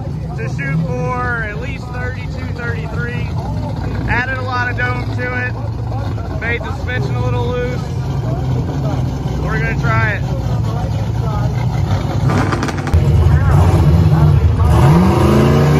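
A car engine idles with a deep, rough rumble.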